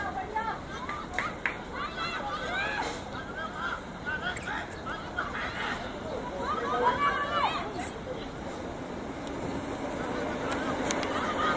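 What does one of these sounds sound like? Young women shout and call out to one another across an outdoor field.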